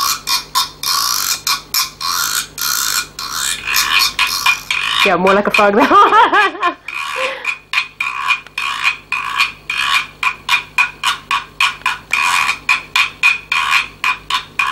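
A scraper rasps rhythmically along a ridged guiro.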